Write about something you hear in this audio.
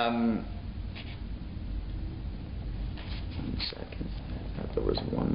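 An older man speaks calmly and close by, as if reading out.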